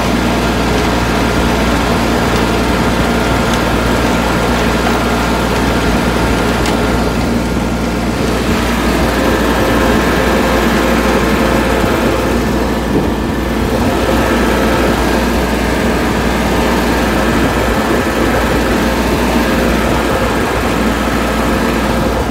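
A tractor engine drones steadily as it drives along.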